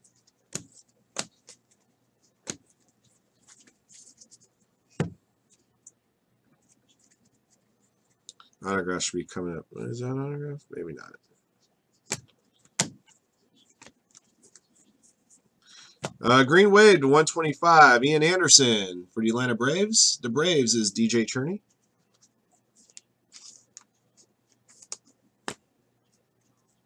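Trading cards flick and tap as they are sorted by hand.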